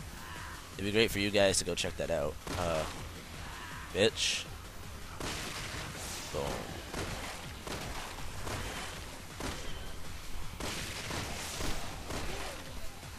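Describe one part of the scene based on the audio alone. Heavy punches land with dull thuds.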